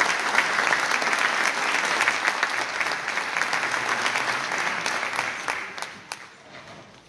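A large audience applauds in a big hall, then the clapping fades away.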